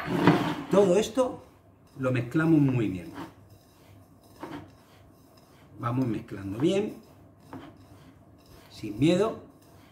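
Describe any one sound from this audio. Hands mix food in a bowl with soft squelching.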